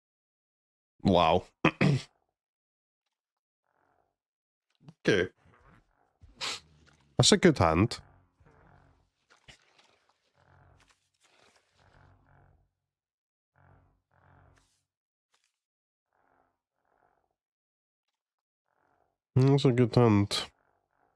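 A man speaks in short animated bursts, close through a headset microphone.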